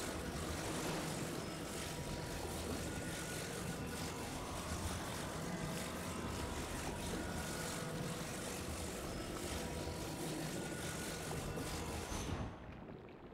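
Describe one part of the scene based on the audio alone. A humming magical beam drones steadily.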